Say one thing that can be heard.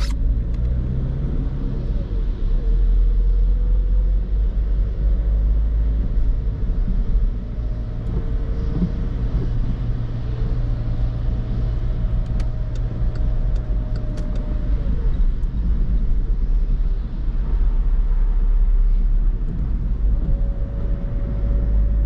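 A car engine hums steadily from inside the cabin and rises and falls in pitch.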